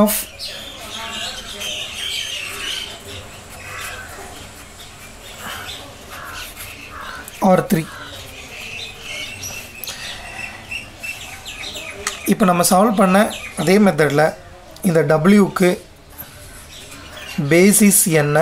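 A marker squeaks and scratches across a board.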